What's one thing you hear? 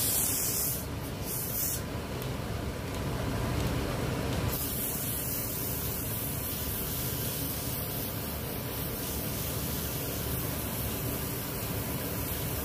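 A wood lathe hums steadily as it spins.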